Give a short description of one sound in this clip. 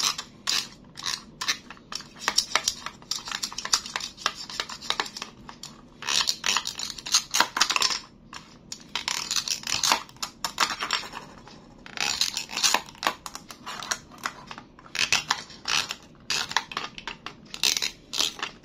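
A plastic knife taps and scrapes against a toy corn cob.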